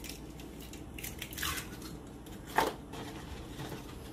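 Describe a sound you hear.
Eggs clink and a cardboard carton rustles as eggs are picked out.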